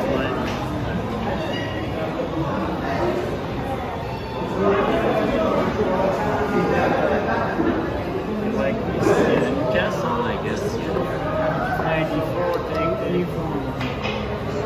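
Chess pieces knock against a board.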